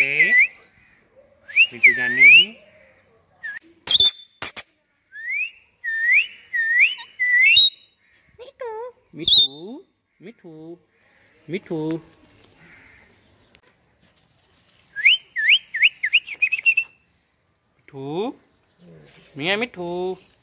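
Parakeets squawk and whistle close by in short, repeated calls.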